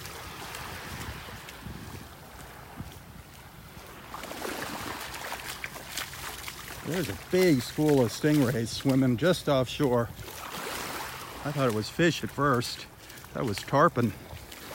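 Small waves lap gently at the shore.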